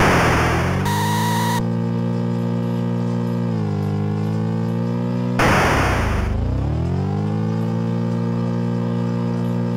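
A buzzy electronic engine drone hums steadily, dipping and rising in pitch.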